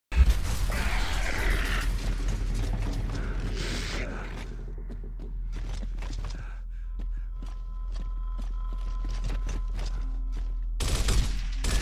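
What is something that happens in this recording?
Heavy boots thud on a stone floor as an armoured soldier runs.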